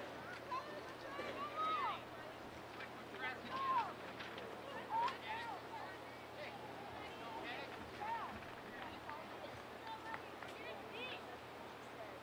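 Young women shout to each other from a distance outdoors.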